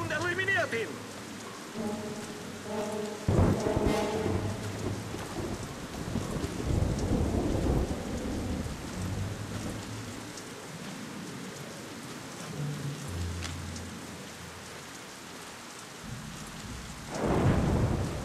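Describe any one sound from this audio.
Rain falls steadily.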